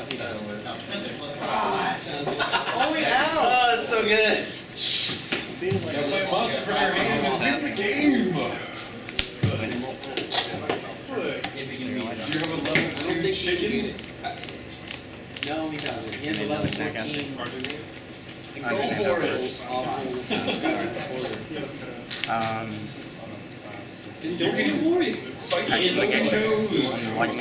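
Young men talk calmly close by.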